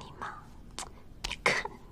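A woman speaks sharply up close.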